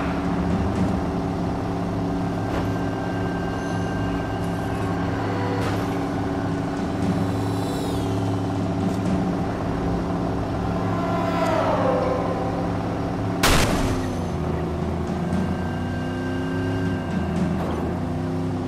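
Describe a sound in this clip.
A car engine hums steadily at speed.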